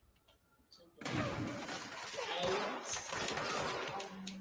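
Debris crashes and shatters.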